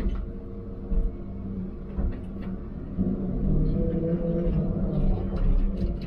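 Hydraulics whine as the machine's arm swings.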